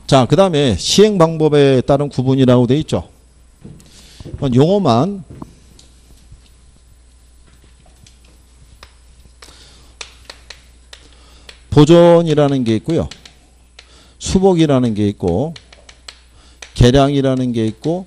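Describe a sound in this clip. A middle-aged man lectures with animation through a microphone, in short bursts with pauses.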